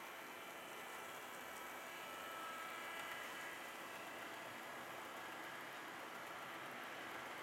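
A model train's motor hums as it runs along the track.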